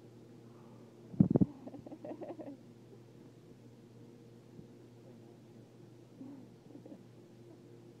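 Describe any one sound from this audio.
Two dogs growl and snarl playfully as they wrestle.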